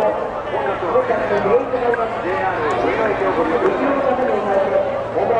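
A large crowd of men and women chatter loudly all around, outdoors.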